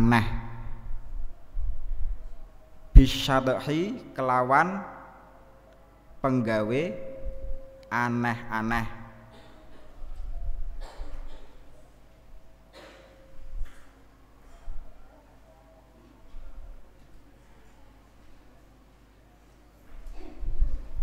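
A young man chants melodically into a microphone, in long sung phrases.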